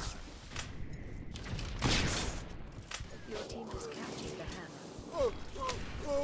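Guns fire in bursts.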